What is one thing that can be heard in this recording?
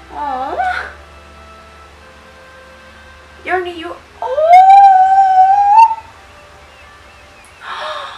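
A young woman talks and hums with animation close to a microphone.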